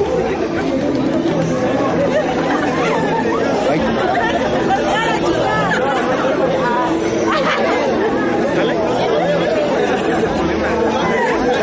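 A large crowd of men and women talks and murmurs all at once, close by.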